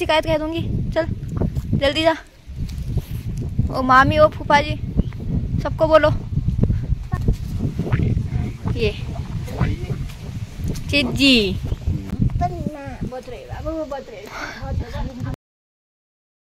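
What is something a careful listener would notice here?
A small child babbles and calls out nearby.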